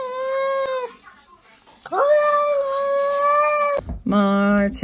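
A cat meows loudly up close in long drawn-out cries.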